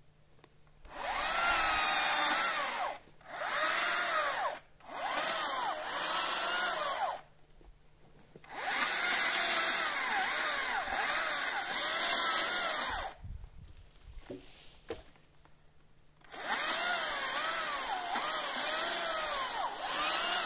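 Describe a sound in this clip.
A chainsaw buzzes loudly in bursts, revving up and down as it cuts wood.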